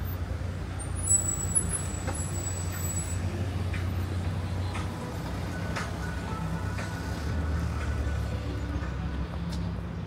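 Cars drive past on a nearby street with a steady hum.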